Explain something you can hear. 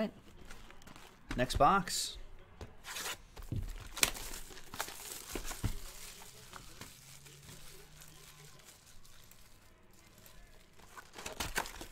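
Plastic wrapping crinkles as it is torn open.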